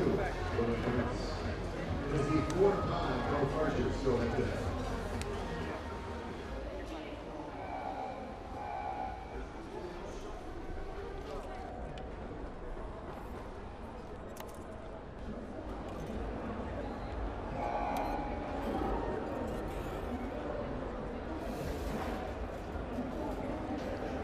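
A crowd murmurs softly outdoors.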